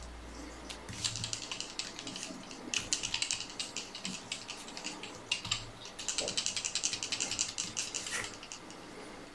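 Thread rasps softly as it is wound and pulled tight close by.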